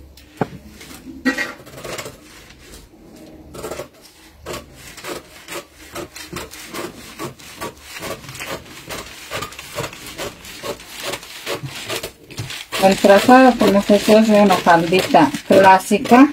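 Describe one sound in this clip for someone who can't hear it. Scissors snip steadily through stiff paper.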